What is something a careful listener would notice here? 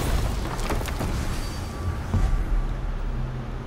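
A magical gateway whooshes and shimmers as it opens.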